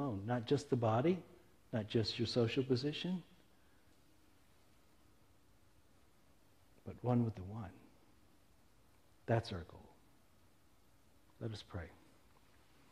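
A middle-aged man speaks in short bursts with pauses, with animation, heard through a microphone.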